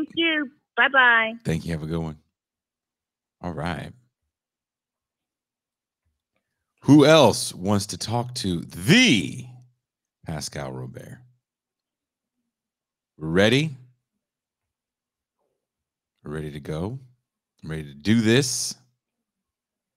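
A man speaks calmly into a microphone in short bursts with pauses.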